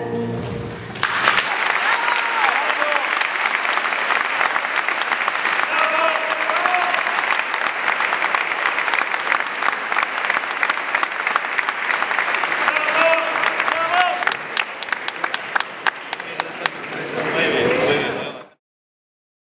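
A crowd applauds loudly in a large echoing hall.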